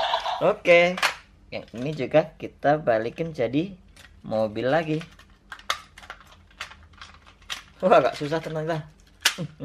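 Plastic toy parts click and snap as a hand folds them.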